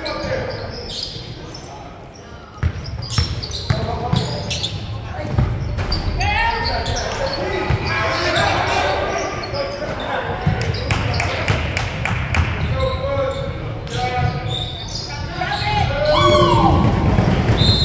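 Spectators and players shout and call out from around the court.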